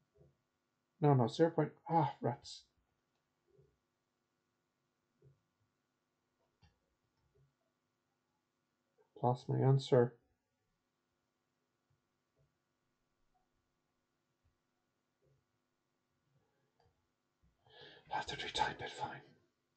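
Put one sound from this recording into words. A young man speaks calmly into a close microphone, in short bursts with long pauses.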